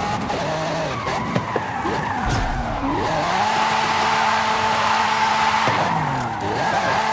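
A car engine revs and roars, rising and falling as gears shift.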